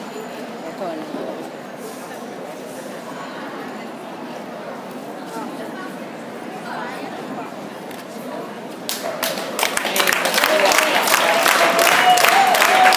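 A crowd murmurs and chatters in a large echoing hall.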